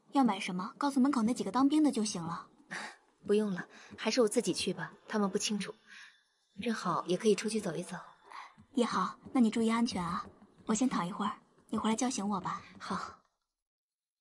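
A young woman speaks gently and warmly, close by.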